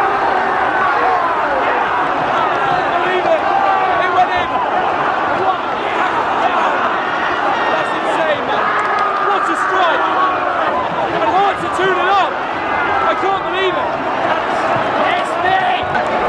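A young man shouts excitedly close by.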